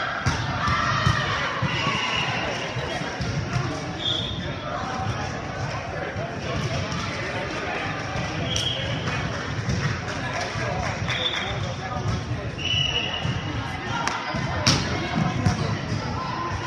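A volleyball thumps off players' arms.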